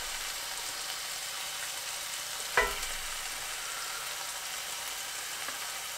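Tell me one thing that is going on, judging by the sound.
A spatula scrapes food from a pan onto a plate.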